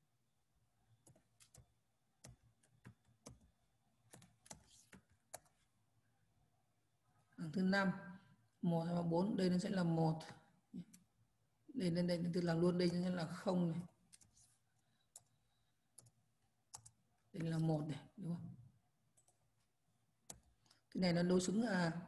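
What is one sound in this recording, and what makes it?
Computer keys click as someone types.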